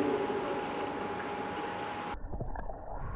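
Water splashes as a swimmer moves through a pool.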